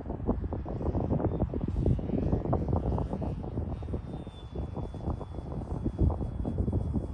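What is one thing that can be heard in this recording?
Gusty wind rumbles against the microphone outdoors.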